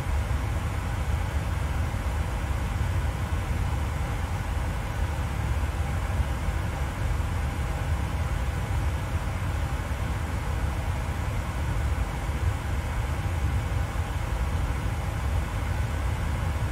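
Aircraft engines drone in a steady low rumble.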